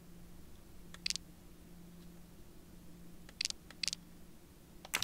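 Short soft clicks sound now and then.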